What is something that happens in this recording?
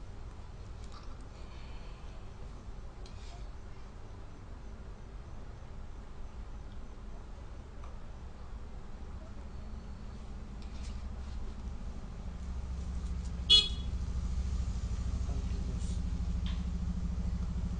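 A spoon clinks against a ceramic bowl.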